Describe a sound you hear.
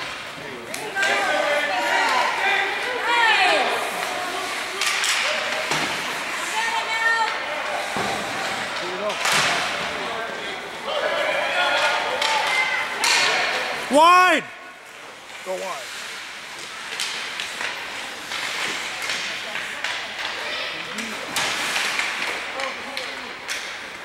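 Spectators shout and cheer in a large echoing rink.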